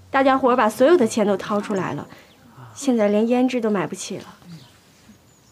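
A young woman speaks with feeling, close by.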